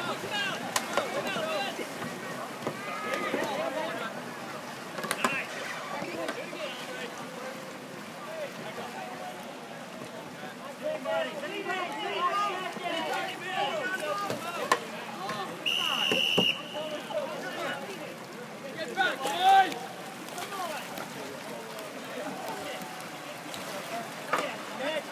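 Players shout and call out across open water in the distance.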